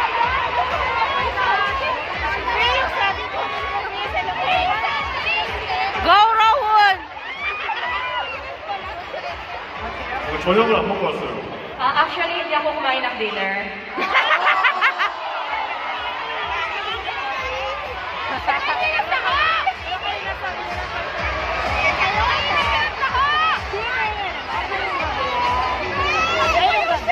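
A large crowd screams and cheers throughout, echoing in a big arena.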